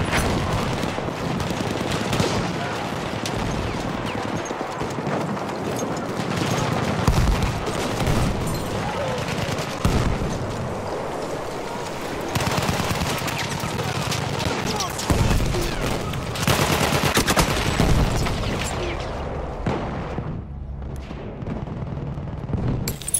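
Rifle shots crack sharply, again and again.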